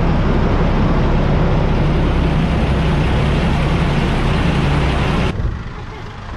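A boat engine rumbles loudly and steadily.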